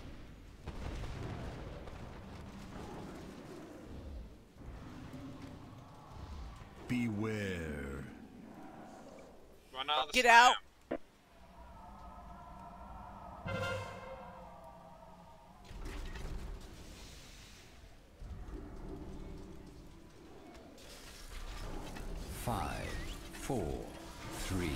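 Fiery magic crackles and whooshes in a fight.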